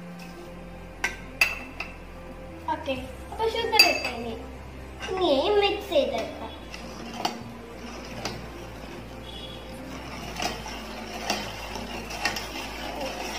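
A metal spoon clinks and scrapes against a pot.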